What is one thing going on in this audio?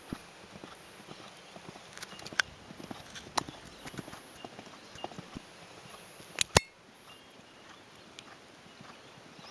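A horse's hooves thud on soft sand at a steady canter.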